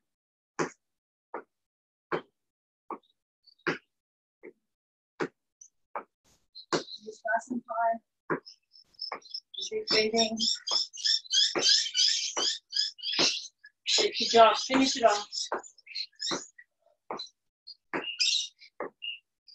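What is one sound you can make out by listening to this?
Footsteps tap lightly on a mat.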